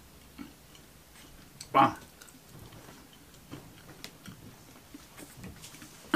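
A man chews food close to a microphone.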